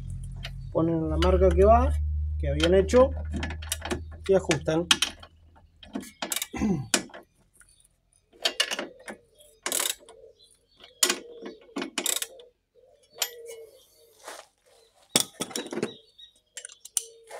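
A wrench clinks and scrapes against metal parts.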